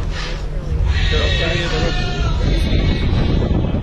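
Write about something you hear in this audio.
Men and women chat nearby.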